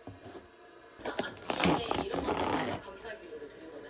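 A plastic lid is pried off a takeout container.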